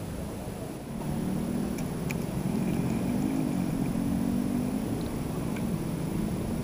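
A fishing reel whirs steadily as its handle is wound.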